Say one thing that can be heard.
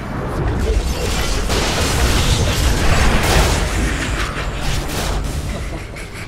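Blows and impacts thud and clang.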